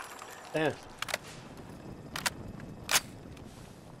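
Metal clicks and clacks as a rifle is reloaded.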